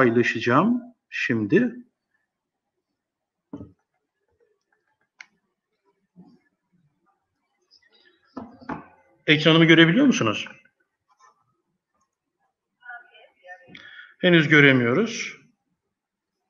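A man speaks over an online call in short bursts with pauses between them.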